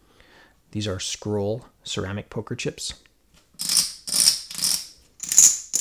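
Poker chips clack together as a hand stacks and shuffles them.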